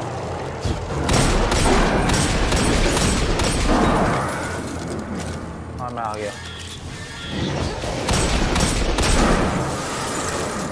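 Energy gunfire blasts and crackles in rapid bursts.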